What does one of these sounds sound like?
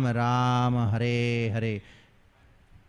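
A man sings or chants close to a microphone in a sustained voice.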